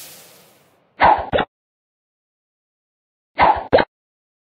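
A bubble launches with a short popping burst.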